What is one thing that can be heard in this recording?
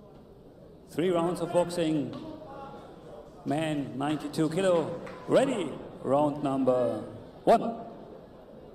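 A man announces loudly over a loudspeaker in an echoing hall.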